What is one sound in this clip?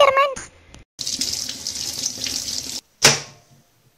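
Water runs from a tap into a metal sink.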